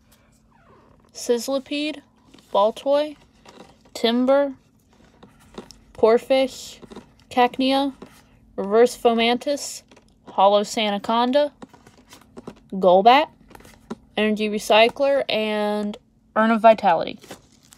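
Playing cards slide and flick softly against each other.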